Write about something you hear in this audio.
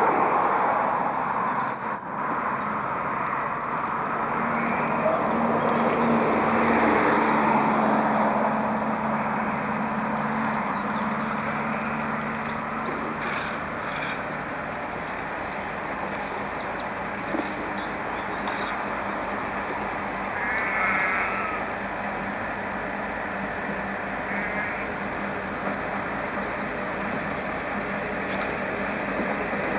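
A narrow-gauge diesel locomotive engine throbs as the locomotive slowly approaches.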